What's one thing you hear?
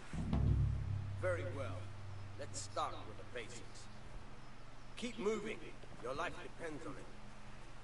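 A man speaks firmly and commandingly, close by.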